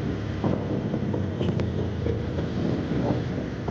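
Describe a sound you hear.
A bus engine rumbles close by as the bus rolls past.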